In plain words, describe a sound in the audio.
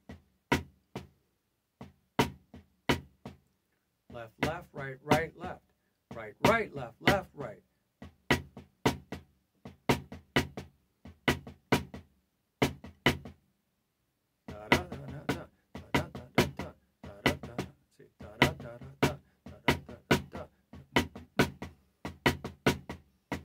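Drumsticks strike a drum in sharp, rhythmic patterns.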